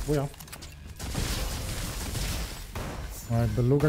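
A smoke grenade bursts with a loud whoosh.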